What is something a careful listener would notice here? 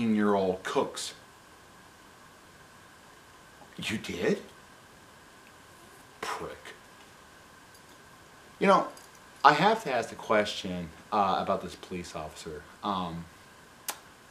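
A middle-aged man speaks with animation close to a microphone, in short bursts with pauses.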